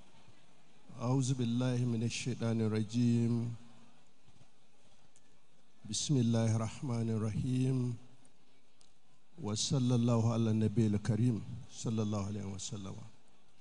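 An elderly man speaks slowly and firmly into a microphone, heard through loudspeakers in pauses.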